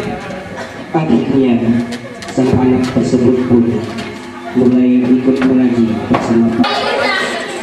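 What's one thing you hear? A man chants in a steady, drawn-out voice.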